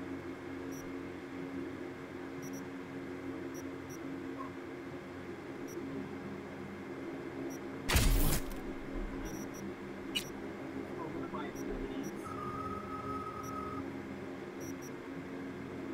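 Soft electronic menu blips sound now and then.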